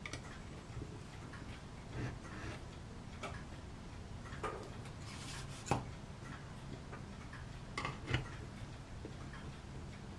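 Small tools tap and click faintly against a plastic model.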